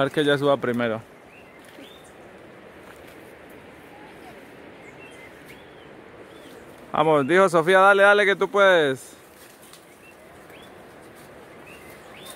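Leaves and branches rustle as someone climbs through brush.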